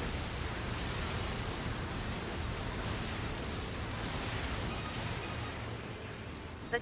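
Explosions rumble and crackle.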